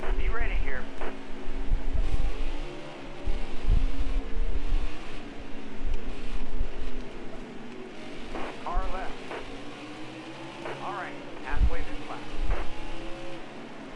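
Race car engines roar steadily at high speed.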